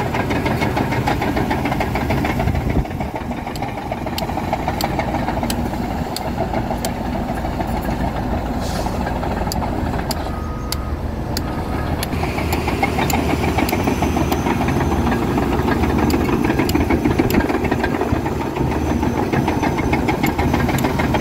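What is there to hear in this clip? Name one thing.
Steel tracks of a bulldozer clank and squeak as it crawls.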